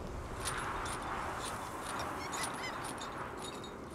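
A heavy chain rattles as it is climbed.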